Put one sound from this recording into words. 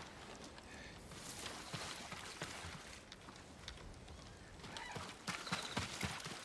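Footsteps slosh through shallow water.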